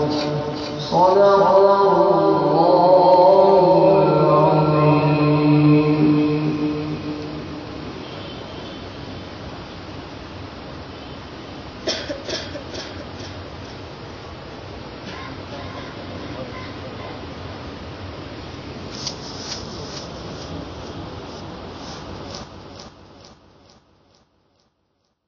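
A waterfall splashes steadily into a pool.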